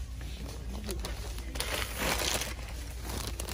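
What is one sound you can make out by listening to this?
A hand brushes and rustles plastic-wrapped packets.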